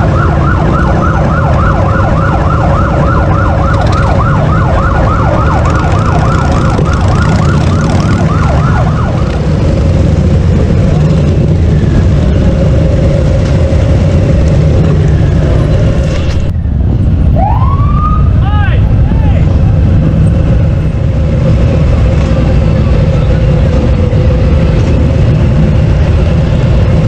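Many motorcycle engines rumble and idle nearby.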